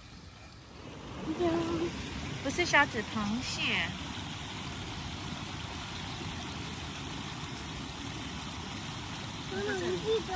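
Water laps gently over stones.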